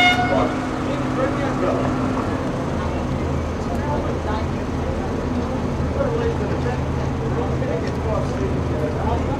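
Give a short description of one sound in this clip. A boat engine hums steadily.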